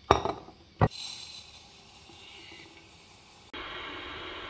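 Dry rice pours and rattles into a glass bowl.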